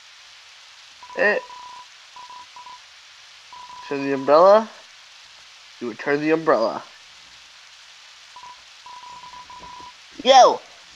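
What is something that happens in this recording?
Short high beeps chatter quickly in a row.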